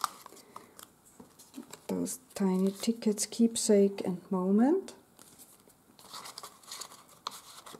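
Paper cards rustle softly as hands handle them.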